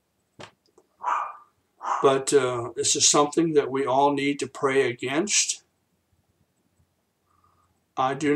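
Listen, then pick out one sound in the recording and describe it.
An older man speaks calmly and slowly into a nearby microphone.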